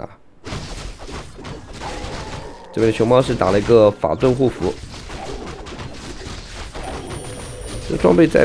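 Swords clash in a game battle.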